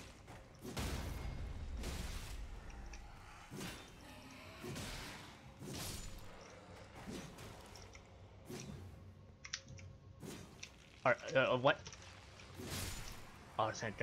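Sword blows clash and thud in quick bursts.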